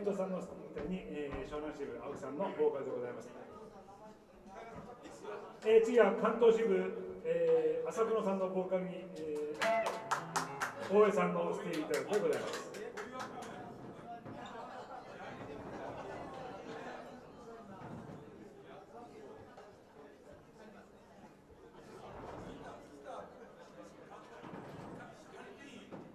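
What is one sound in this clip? A live band plays bass guitar and drums.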